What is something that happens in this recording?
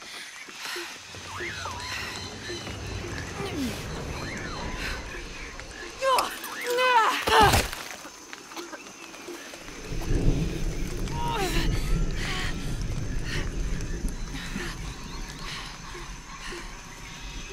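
A young woman gasps and groans in pain close by.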